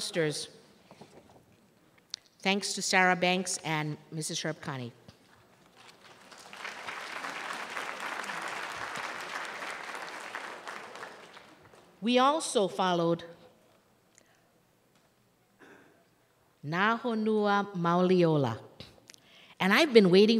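A middle-aged woman speaks with animation through a microphone in a large hall.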